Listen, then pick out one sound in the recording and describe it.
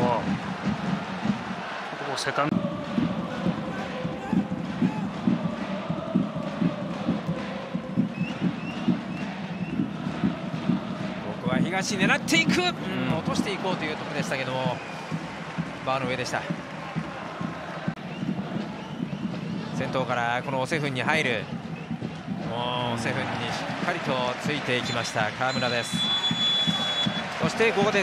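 A stadium crowd roars and chants steadily outdoors.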